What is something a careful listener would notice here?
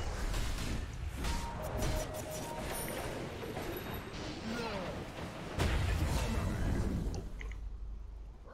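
Spell blasts and clashing weapons crackle and boom in a game fight.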